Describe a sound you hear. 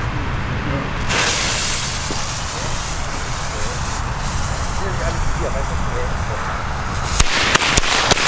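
A firework fuse fizzes and hisses.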